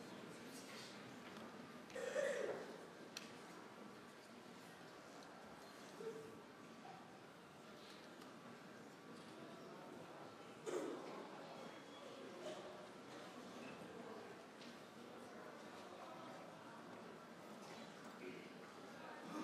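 A grand piano plays softly in a large hall.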